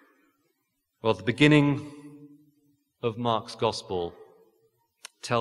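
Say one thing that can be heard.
A man speaks calmly into a microphone in a reverberant hall.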